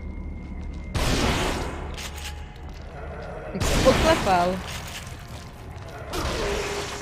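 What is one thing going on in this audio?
A shotgun fires with loud, booming blasts.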